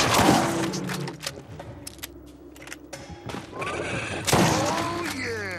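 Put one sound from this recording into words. A gun fires loud shots.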